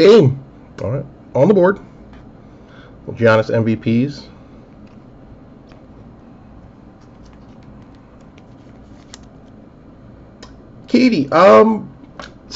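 Trading cards rustle softly as hands handle them.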